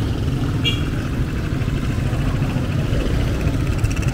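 A motorcycle buzzes past.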